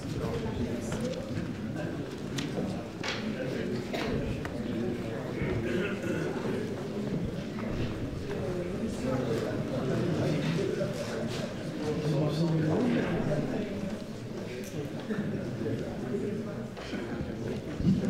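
An audience murmurs and chatters in the hall.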